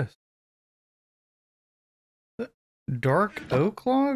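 A wooden chest lid thuds shut.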